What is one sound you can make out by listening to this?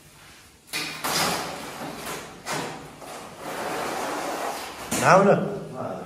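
Plastic panels scrape and clatter on the floor.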